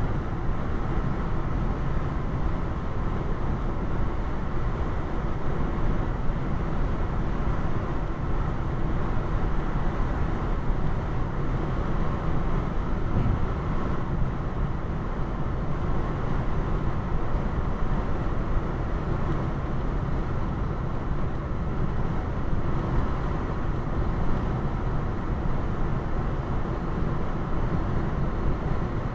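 A car engine hums at a steady speed.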